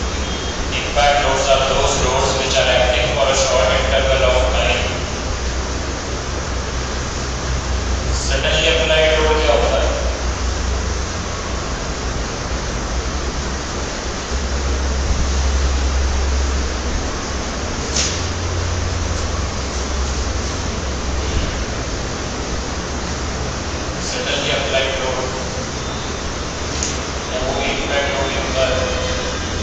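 A man speaks calmly, with long pauses.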